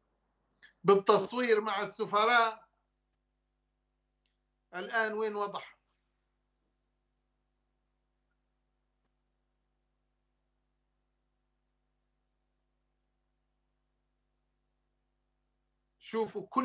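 A middle-aged man speaks calmly into a close microphone, in short bursts with long pauses.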